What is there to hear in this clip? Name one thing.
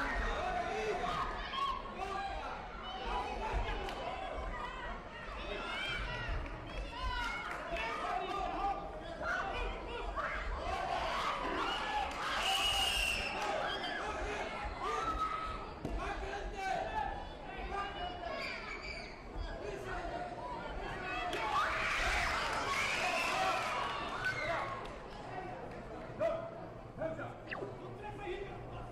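A crowd of spectators murmurs and shouts in a large echoing hall.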